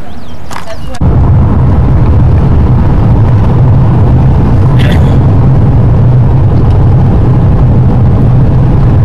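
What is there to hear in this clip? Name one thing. A car engine hums and tyres roar steadily on a paved road.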